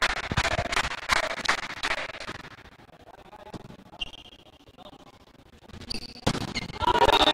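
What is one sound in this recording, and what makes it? A volleyball is hit with sharp slaps during a rally.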